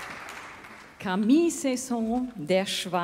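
A young woman speaks into a microphone, heard through loudspeakers in a large hall.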